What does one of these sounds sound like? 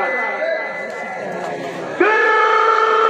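A man speaks loudly into a microphone, heard through loudspeakers outdoors.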